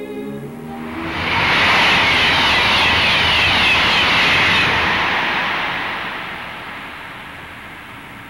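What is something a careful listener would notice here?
A high-speed train rushes past with a loud whoosh, then fades away.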